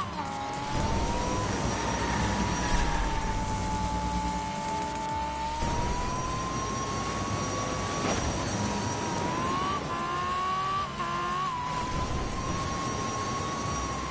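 A race car engine whines at high pitch, rising and falling as it speeds along.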